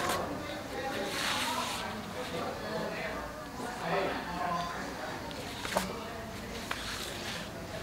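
Paper sheets rustle.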